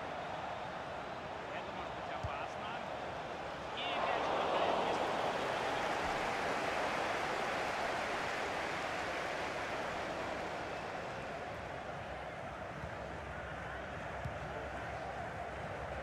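A stadium crowd roars steadily, swelling louder for a while.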